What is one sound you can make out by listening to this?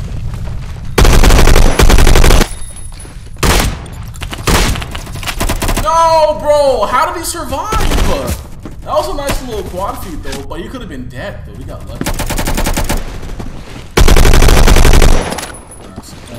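Gunfire bursts loudly from a video game.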